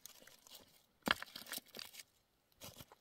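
Rocks knock and scrape as they are shifted by hand.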